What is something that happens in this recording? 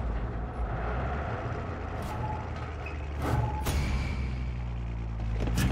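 A metal roller door rattles as it rises.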